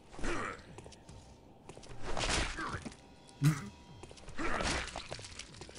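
An axe swings swiftly through the air.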